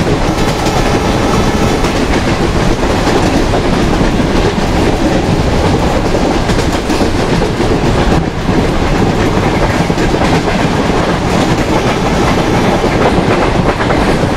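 A passing freight train roars by close alongside.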